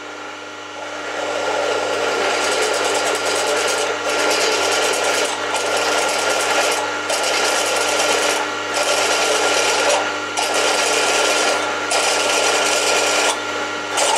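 A drill bit grinds loudly through metal, pausing briefly now and then.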